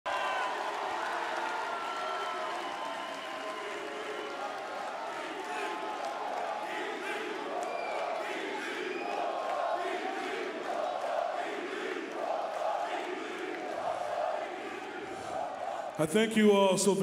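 A large crowd cheers and chants rhythmically in a big echoing arena.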